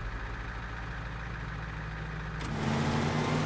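A heavy truck engine idles with a low rumble.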